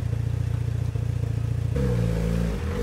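A car engine idles with a deep, rough rumble.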